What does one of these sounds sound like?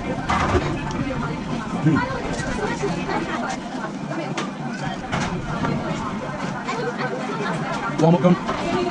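Voices murmur in a busy room.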